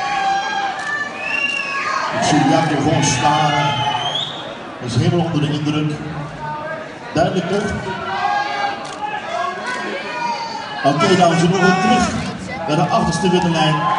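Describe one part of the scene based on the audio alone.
An audience cheers and shouts in a large hall.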